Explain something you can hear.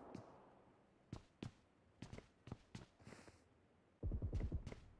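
Footsteps tap quickly on a hard floor.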